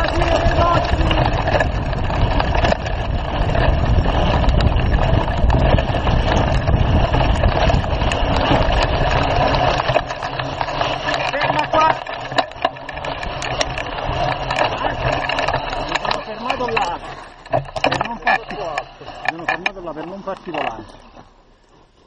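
A bicycle frame rattles and clatters over bumps.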